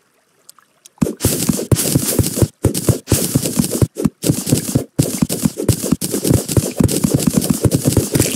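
A pickaxe chips rapidly at blocks.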